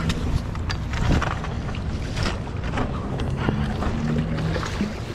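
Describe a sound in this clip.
A landing net splashes in the water.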